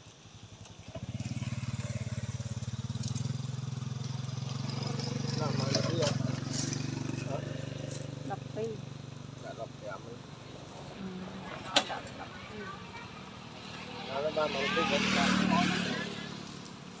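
A motorbike engine hums nearby.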